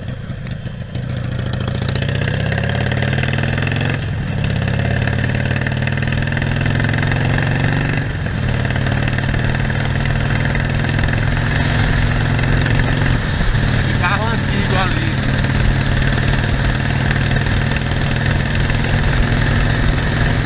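Wind rushes past a motorcycle rider.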